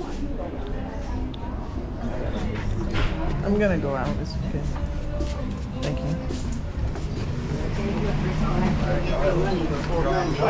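A man talks nearby in a relaxed way.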